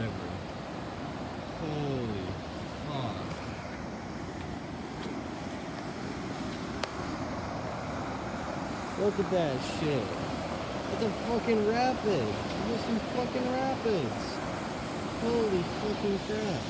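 Floodwater rushes and churns steadily over a shallow rapid.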